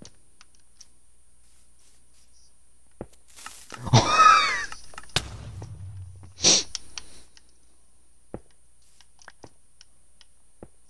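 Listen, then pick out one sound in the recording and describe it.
Short digging thuds sound as blocks are broken in a video game.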